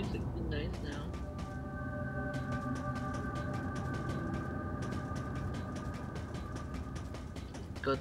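Metallic footsteps clank quickly and evenly.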